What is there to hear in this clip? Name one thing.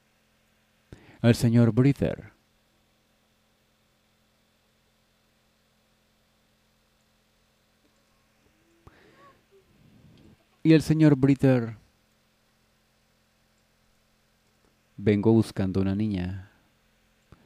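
A young girl speaks softly and hesitantly in short bursts.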